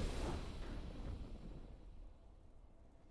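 A triumphant game fanfare rings out and quickly fades away.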